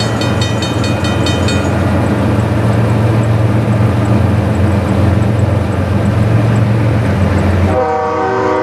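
A crossing bell rings rapidly.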